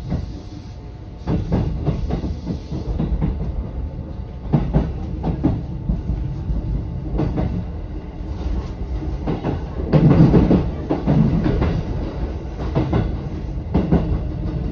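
A train rumbles along the tracks with a steady low drone.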